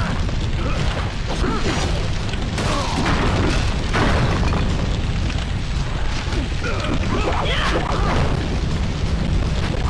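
Flames roar and crackle.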